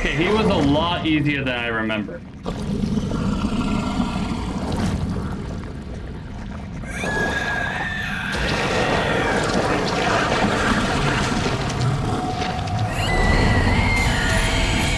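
A monster roars and growls.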